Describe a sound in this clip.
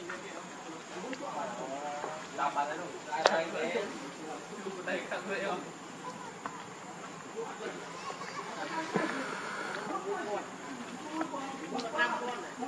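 Young monkeys squeak and chirp close by.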